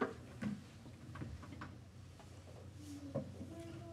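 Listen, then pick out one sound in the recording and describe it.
A guitar is set down with a soft knock.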